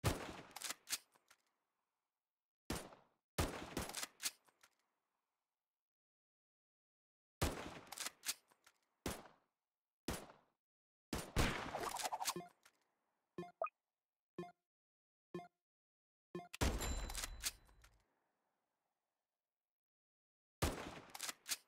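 Rifle shots crack in short bursts.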